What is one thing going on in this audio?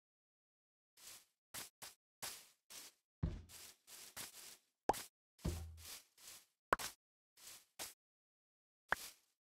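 Footsteps crunch on grass in a steady walking rhythm.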